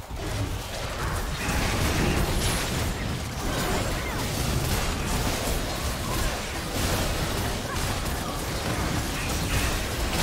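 Video game combat sounds of sword strikes and magic spells clash.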